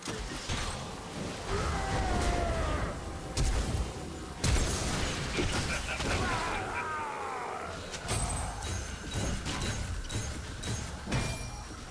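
Game spell effects blast and crackle in a fast fight.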